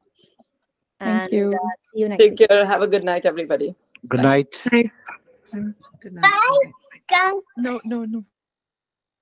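A young woman talks over an online call.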